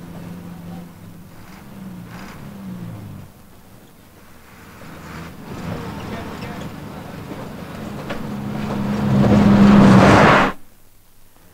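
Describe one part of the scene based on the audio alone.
A bus engine rumbles and whines as it climbs a winding road.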